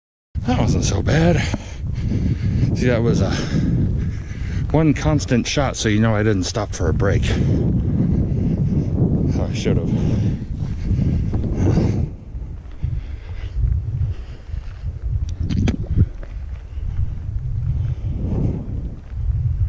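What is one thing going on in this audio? Strong wind rumbles and buffets across the microphone outdoors.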